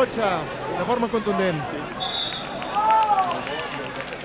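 A crowd murmurs in an open-air stadium.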